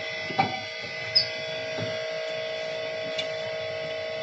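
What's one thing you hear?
Metal clicks and knocks faintly as a motor shaft is handled.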